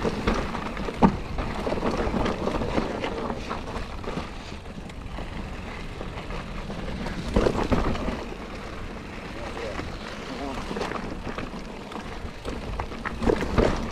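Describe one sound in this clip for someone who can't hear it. A bicycle's frame and chain clatter over bumps.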